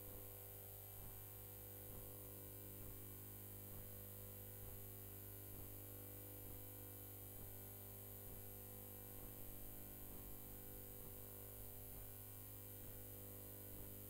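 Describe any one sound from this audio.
Boxing gloves thud against a body and gloves.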